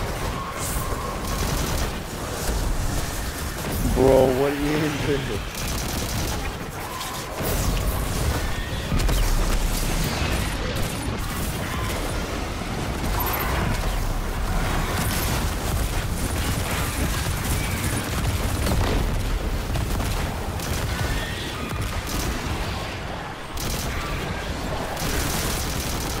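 Gunfire and explosions crackle and boom throughout.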